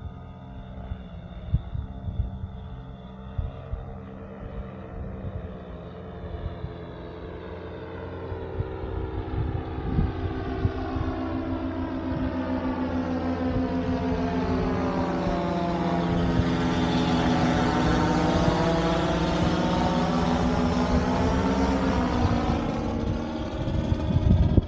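A paramotor engine drones overhead, growing steadily louder as it comes closer, then drops in pitch as it passes.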